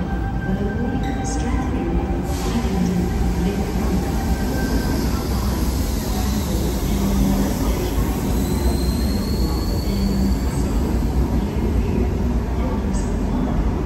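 A train rumbles past on the far track, with a steady low roar.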